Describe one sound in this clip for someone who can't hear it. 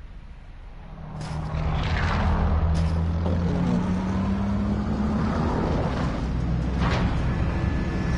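Propeller engines of a large aircraft drone loudly and steadily close by.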